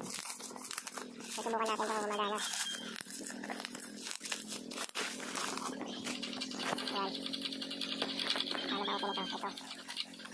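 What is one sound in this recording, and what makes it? A cardboard box scrapes and taps as it is handled.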